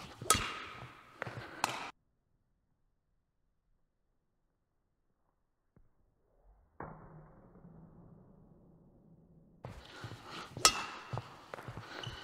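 A badminton racket smacks a shuttlecock sharply, echoing in a large hall.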